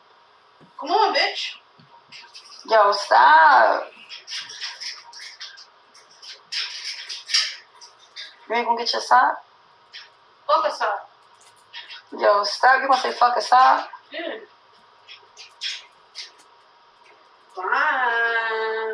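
A woman talks loudly and with animation close by.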